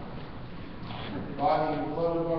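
A congregation begins to sing together in a large echoing hall.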